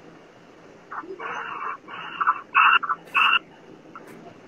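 A young man speaks briefly with animation over an online call.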